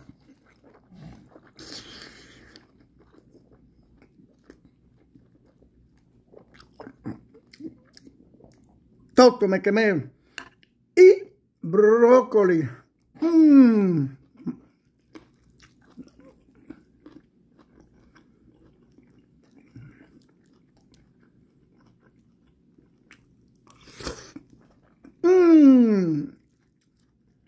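A man chews food with his mouth close by.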